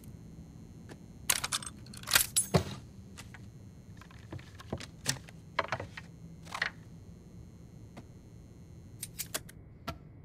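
Metal tools clink and clatter on a workbench.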